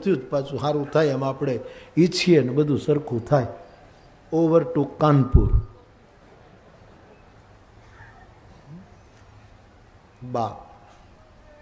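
An elderly man speaks with animation into a microphone, in pauses.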